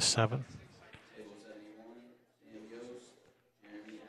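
Pool balls click together on a table.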